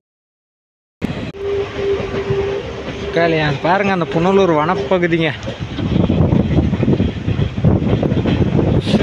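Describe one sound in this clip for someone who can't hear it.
A passenger train rumbles along the rails, heard from on board.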